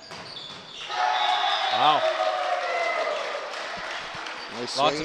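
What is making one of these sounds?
A crowd cheers loudly in an echoing gym.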